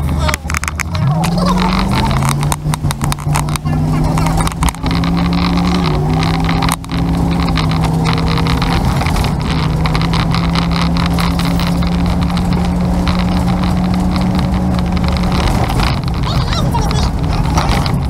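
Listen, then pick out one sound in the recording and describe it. A vehicle engine revs up, climbing in pitch as it accelerates.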